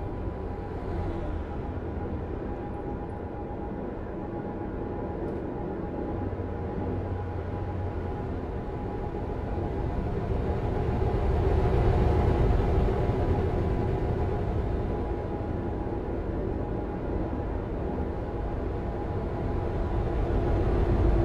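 A truck engine drones steadily as it drives along a highway.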